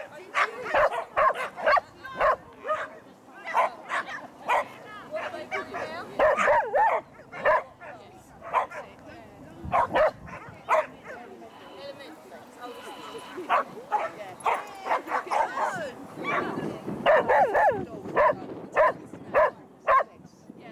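A woman calls out short, sharp commands to a dog outdoors.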